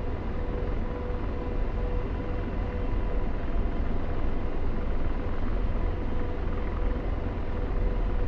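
A warning tone beeps in the cockpit.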